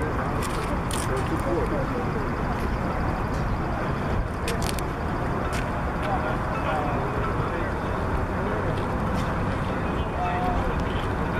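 A small propeller plane drones steadily overhead.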